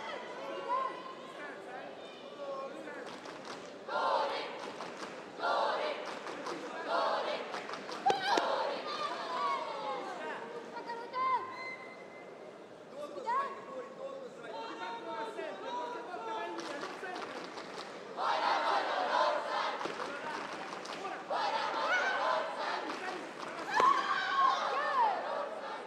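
A woman referee calls out commands.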